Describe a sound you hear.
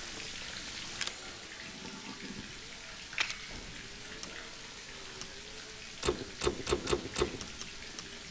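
Short game menu clicks and beeps sound now and then.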